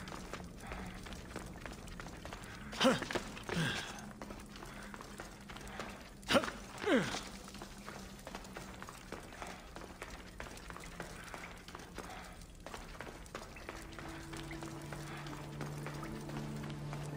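Footsteps crunch on gravel and stone.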